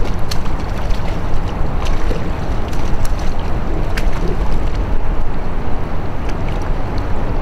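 A paddle dips and splashes in the water.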